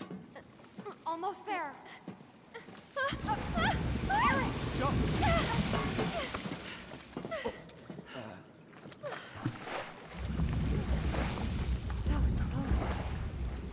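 A young woman calls out with animation.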